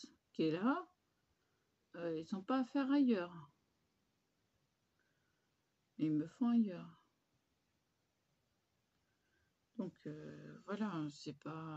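A woman speaks calmly close to a microphone, pausing between phrases.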